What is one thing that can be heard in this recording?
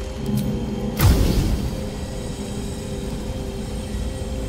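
A magical blast bursts with a deep whoosh.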